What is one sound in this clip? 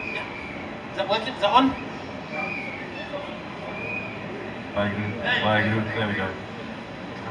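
A man speaks with animation through a microphone over loudspeakers outdoors.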